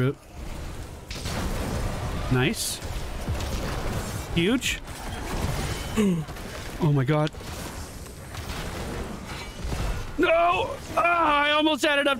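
Magic blasts, zaps and explosions crackle in a hectic battle.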